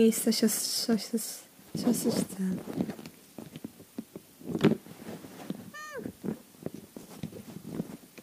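Small plastic toy figures knock and tap together softly.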